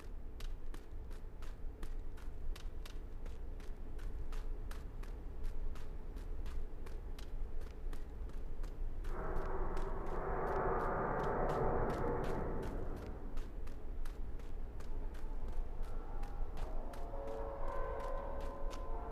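Footsteps run quickly and steadily across a hard floor.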